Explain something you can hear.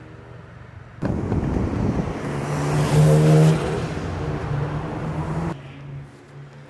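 A sports car engine roars loudly, revving as the car speeds past.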